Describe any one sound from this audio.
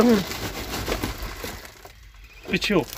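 A paper sack rustles and crinkles as it is handled.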